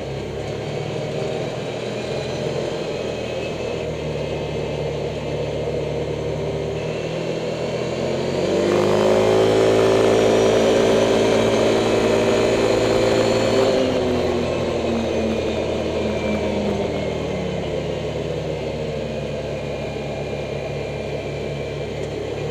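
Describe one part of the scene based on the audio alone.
An engine hums steadily and revs louder for a while.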